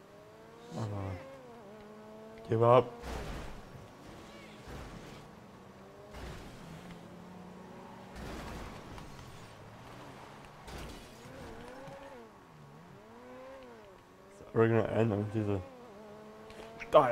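A sports car engine roars and revs up and down.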